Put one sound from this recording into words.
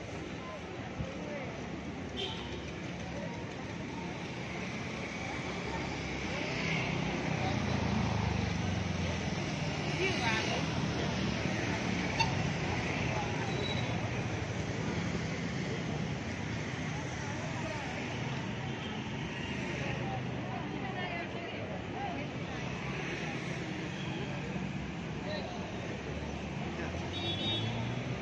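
Many people chatter at once outdoors on a busy street.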